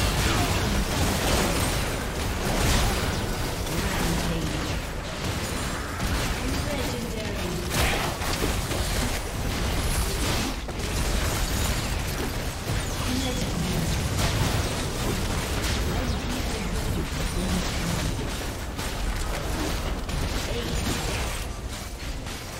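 Magic blasts crash and whoosh in a busy fight between game characters.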